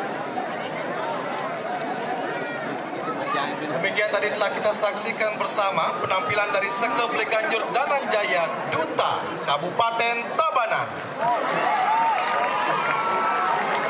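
A woman reads out through a microphone in a large echoing hall.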